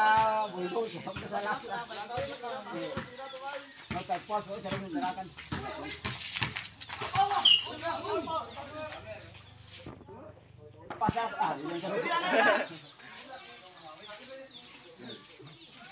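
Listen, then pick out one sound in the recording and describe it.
Young men shout and chatter outdoors during a game.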